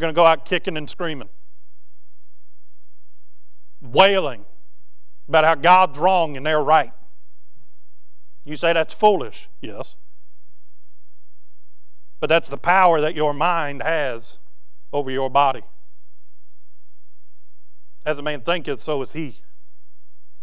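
A man speaks calmly through a microphone, with pauses between phrases.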